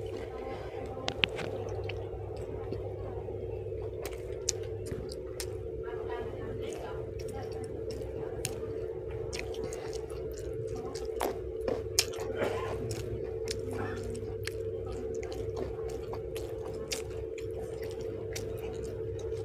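A young woman chews food noisily and close up.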